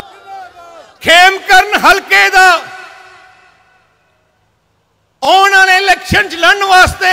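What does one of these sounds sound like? An elderly man speaks forcefully into a microphone over loudspeakers.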